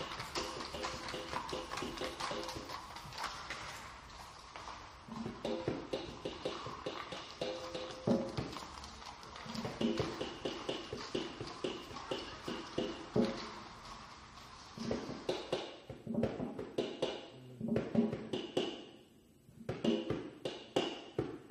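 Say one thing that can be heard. A double bass is plucked in a walking rhythm.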